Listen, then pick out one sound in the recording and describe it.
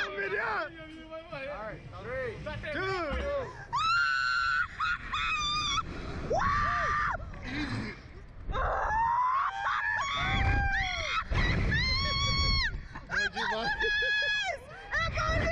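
A young man talks and laughs excitedly close by.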